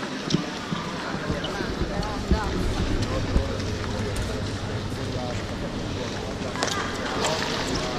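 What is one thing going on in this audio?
Water splashes and gurgles close by as the microphone dips underwater.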